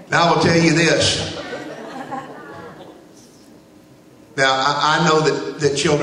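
A man speaks forcefully into a microphone in a large echoing hall, heard through loudspeakers.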